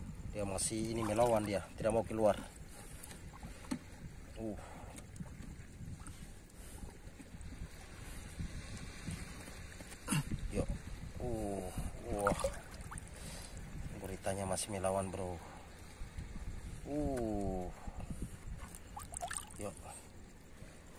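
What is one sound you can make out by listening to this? Shallow water sloshes and splashes softly as hands move through it.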